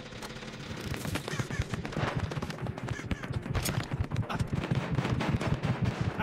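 A heartbeat thumps, growing louder and faster.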